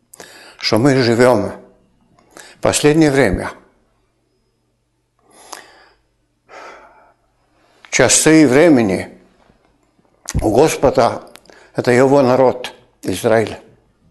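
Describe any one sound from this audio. An elderly man speaks calmly and expressively into a nearby microphone, with pauses.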